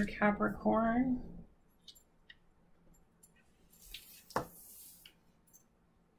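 Cards are laid down on a table with soft taps.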